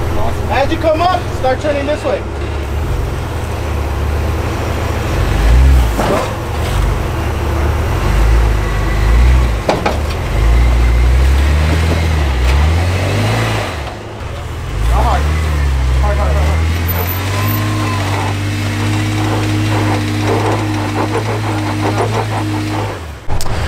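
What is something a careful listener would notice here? Tyres grind and scrape against rock.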